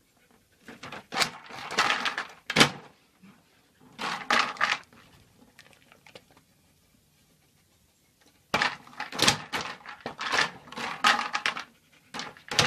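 Plastic bottles rattle and clatter as a dog paws at them.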